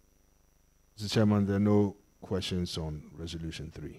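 A man speaks clearly over a microphone.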